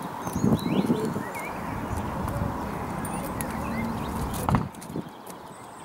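A pony's hooves clop on tarmac.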